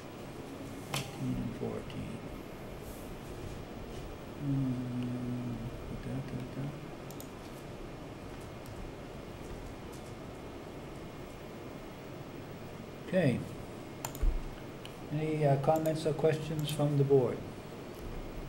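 Men speak in short, quiet remarks through room microphones, with long pauses between.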